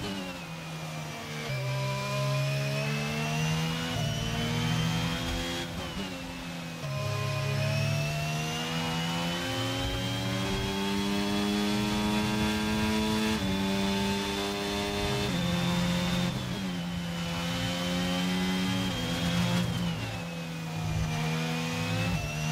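A racing car engine whines at high pitch, rising through the gears and dropping as it slows for corners.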